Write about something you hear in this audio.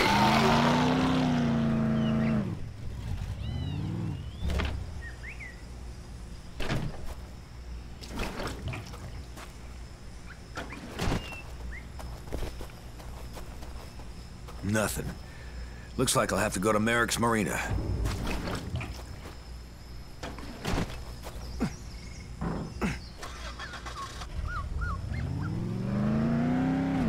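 A car engine revs and hums.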